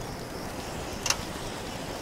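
A short click sounds from a game interface.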